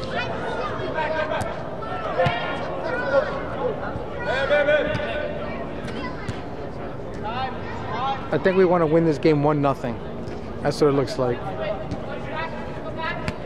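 Young players shout and call out to each other in a large echoing hall.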